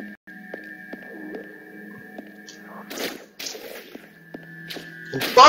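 Short electronic shots and hit effects pop now and then.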